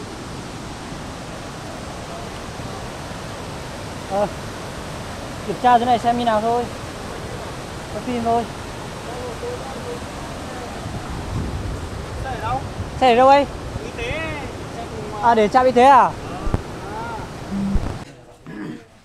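A muddy river rushes steadily.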